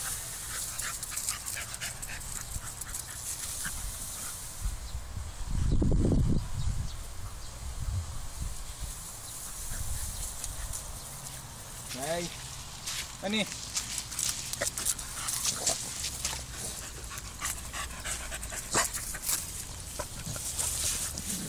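Paws patter and scrape on wet gravel.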